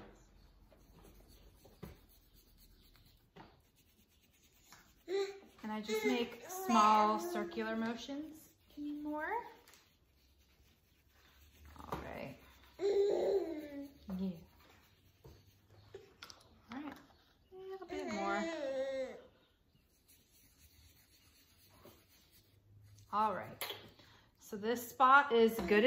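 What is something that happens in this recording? A small brush dabs and rubs softly on fabric.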